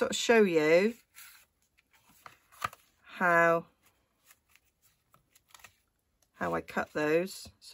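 Stiff paper rustles and taps softly as it is folded and handled.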